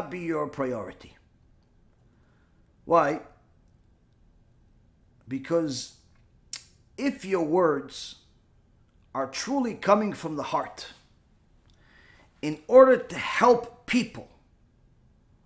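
A middle-aged man speaks calmly in bursts with pauses, close to a microphone.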